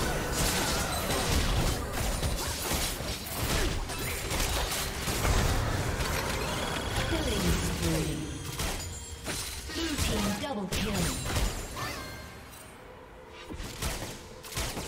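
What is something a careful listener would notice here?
Magic blasts whoosh and crackle in a busy video game battle.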